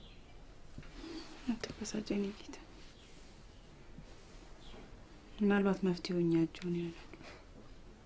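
A young woman speaks softly and gently, close by.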